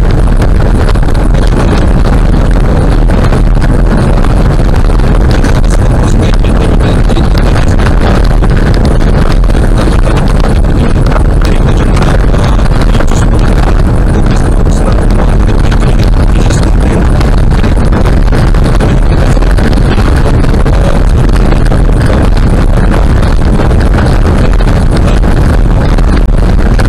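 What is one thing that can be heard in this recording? A car engine hums steadily at speed.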